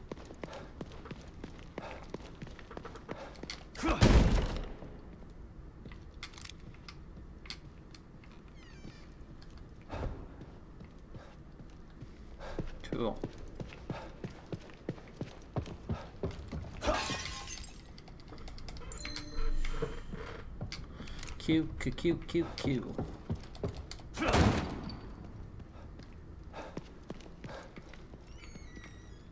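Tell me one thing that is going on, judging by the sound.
A young man talks calmly into a microphone.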